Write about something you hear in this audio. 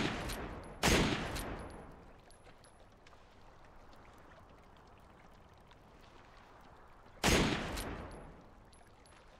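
A sniper rifle fires with a sharp crack that echoes away.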